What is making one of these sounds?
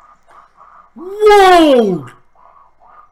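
A young man lets out a loud, sliding exclamation.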